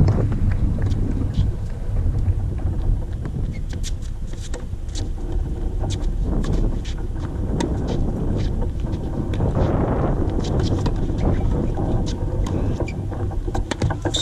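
Tennis balls are struck with rackets in a rally, with sharp pops.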